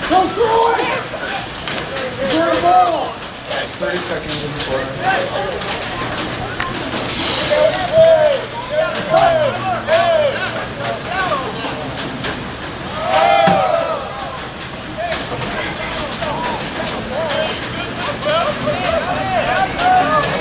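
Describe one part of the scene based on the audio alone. Lacrosse sticks clack together sharply now and then.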